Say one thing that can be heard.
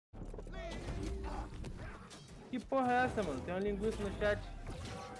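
Game combat effects clash and whoosh.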